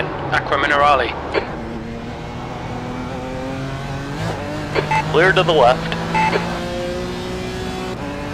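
A race car engine drones and shifts pitch as the car speeds along a track.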